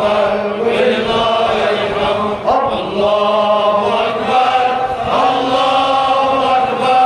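An elderly man chants loudly into a microphone, heard through a loudspeaker with echo outdoors.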